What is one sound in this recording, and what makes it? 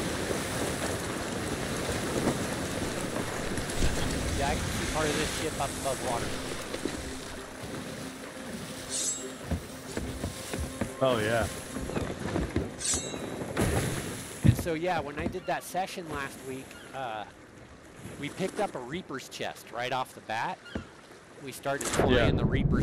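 Ocean waves roll and wash against a wooden ship.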